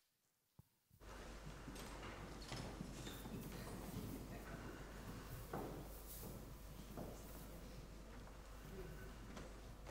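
A brass band plays in a large hall.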